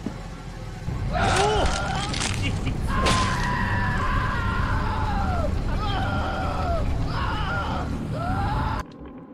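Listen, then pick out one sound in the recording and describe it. A young man shouts and laughs loudly into a microphone.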